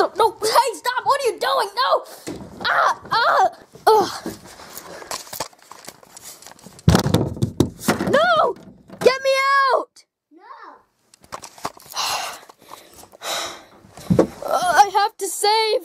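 A boy shouts and talks excitedly close to the microphone.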